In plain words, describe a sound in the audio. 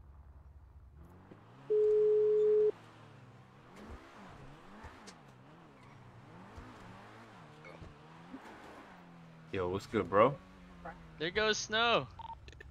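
A car engine hums and revs up and down repeatedly.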